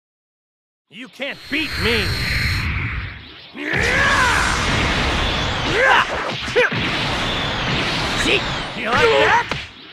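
Punches and energy blasts crash in a video game fight.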